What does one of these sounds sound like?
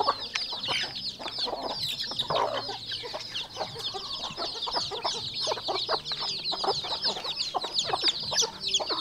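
Chickens peck rapidly at the ground.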